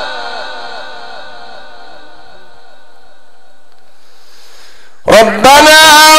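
A man chants in a long, wavering voice through a microphone.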